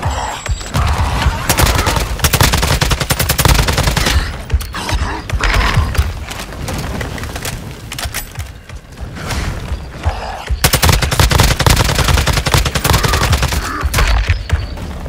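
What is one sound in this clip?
A rifle fires rapid bursts of gunshots.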